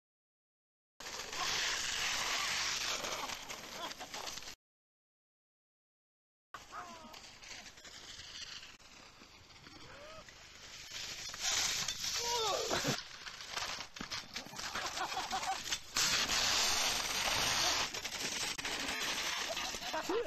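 A sled scrapes and hisses over snow.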